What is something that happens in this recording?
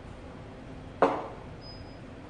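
A cup knocks down onto a table.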